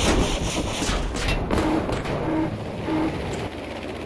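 Bombs explode with a loud boom.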